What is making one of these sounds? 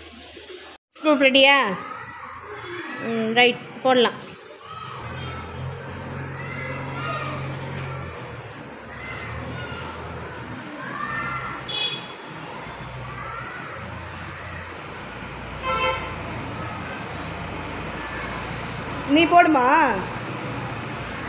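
Young children talk and call out nearby.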